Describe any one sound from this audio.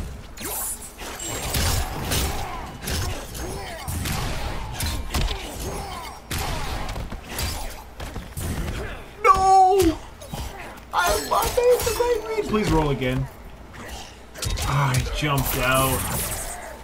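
Heavy punches and kicks land with sharp thuds and cracks.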